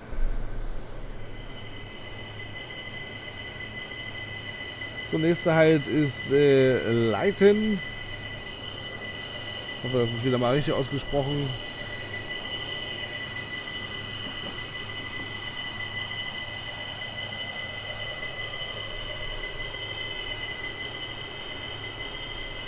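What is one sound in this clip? An electric train hums steadily as it runs along the rails.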